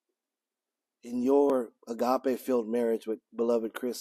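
A man speaks calmly and clearly into a nearby microphone.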